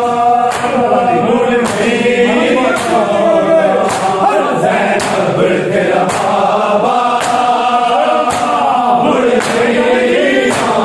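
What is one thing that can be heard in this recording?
Men beat their bare chests in a steady rhythm.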